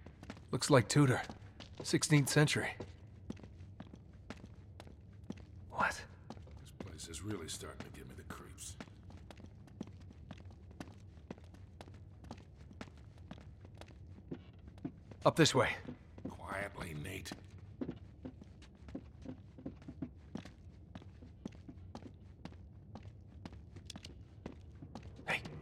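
Footsteps tap on a stone floor at a walking pace.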